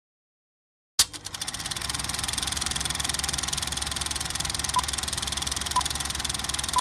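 A film projector clatters rapidly and steadily.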